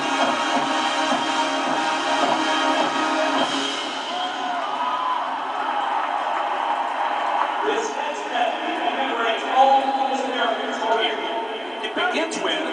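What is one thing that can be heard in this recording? A marching band plays brass and drums loudly in a large echoing stadium.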